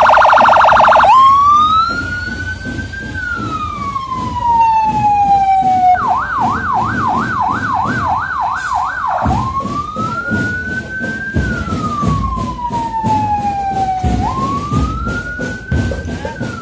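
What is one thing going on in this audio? A police siren wails close by, sweeping up and down.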